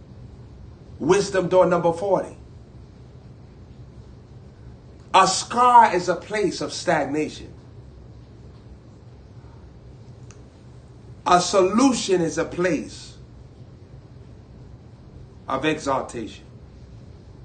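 A young man speaks with animation, close to a microphone, in short bursts with pauses.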